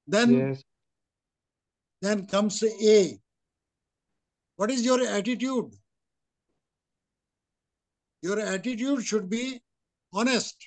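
An elderly man speaks earnestly through an online call, in short bursts with pauses.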